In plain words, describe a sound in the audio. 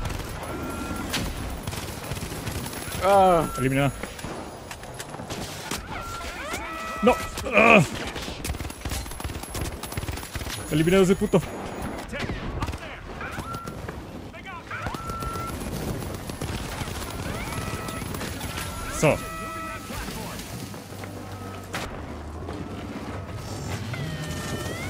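Automatic rifle fire rattles in a video game.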